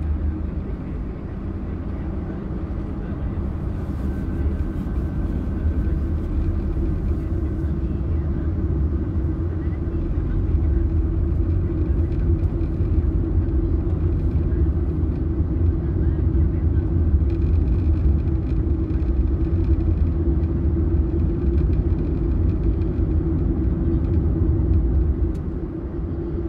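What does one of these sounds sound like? Tyres roll steadily on a road.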